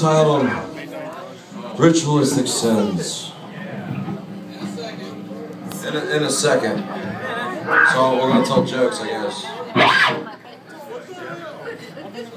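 A rock band plays loudly with electric guitars and drums.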